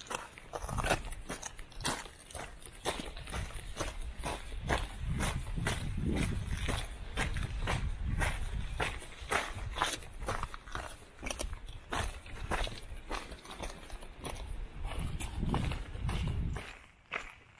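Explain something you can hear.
Footsteps crunch steadily over loose rocks and gravel.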